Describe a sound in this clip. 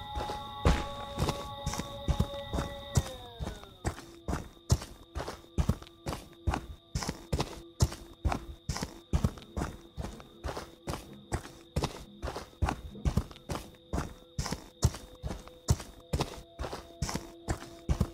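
Heavy footsteps crunch steadily over dry leaves.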